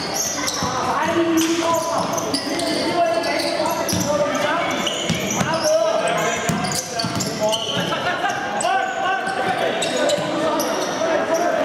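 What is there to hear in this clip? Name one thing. A ball thumps as players kick it.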